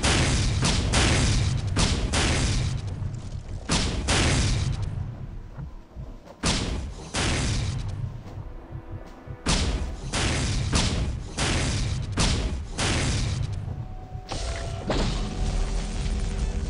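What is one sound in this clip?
A heavy gun fires repeated booming shots, each ringing out and fading.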